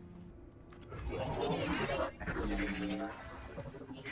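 A game effect whooshes and chimes loudly.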